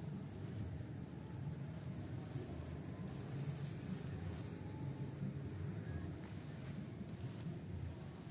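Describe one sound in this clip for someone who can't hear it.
Nylon fabric rustles and flaps as it is shaken out.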